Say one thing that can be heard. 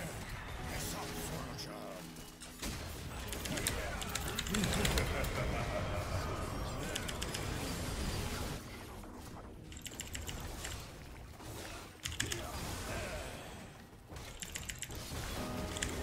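Game sound effects clash and burst during a fight.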